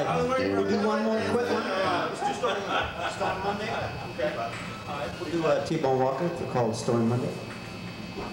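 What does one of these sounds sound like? A man speaks into a microphone over loudspeakers with animation.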